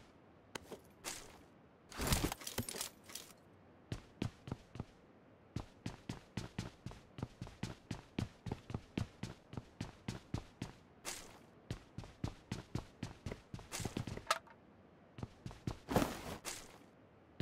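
Gear rustles and clatters as items are picked up.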